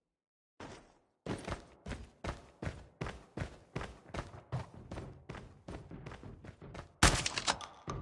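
Footsteps run quickly and evenly over a hard floor.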